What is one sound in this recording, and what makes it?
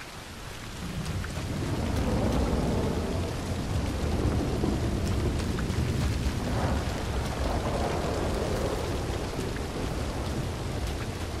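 A large fire roars and crackles close by.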